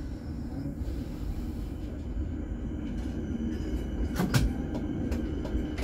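A tram rolls away along the tracks with a low rumble.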